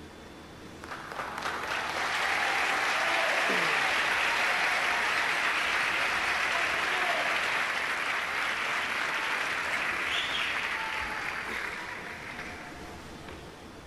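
A large audience applauds and cheers.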